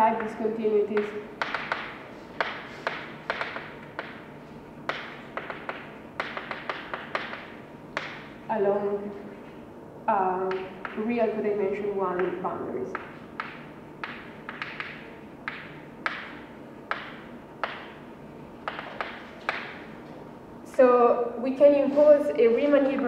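A woman speaks calmly in a room with a slight echo.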